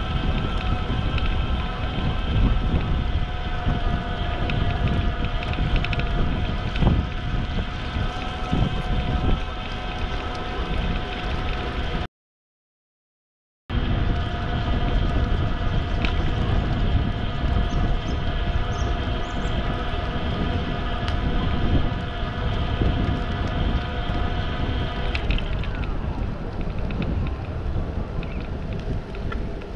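Bicycle tyres hum steadily on smooth pavement.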